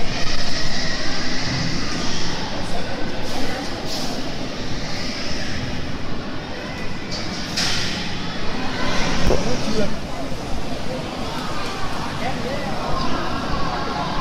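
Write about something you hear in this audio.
Water splashes and churns as sea lions swim.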